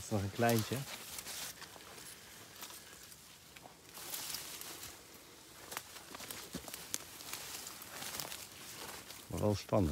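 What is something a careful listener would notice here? Plants rustle and crunch underfoot as someone moves through undergrowth.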